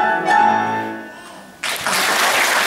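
A piano plays a final chord that rings out and fades.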